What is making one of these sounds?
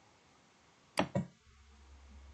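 A computer mouse clicks twice.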